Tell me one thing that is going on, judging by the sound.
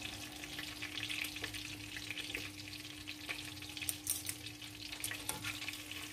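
Metal tongs scrape against a frying pan.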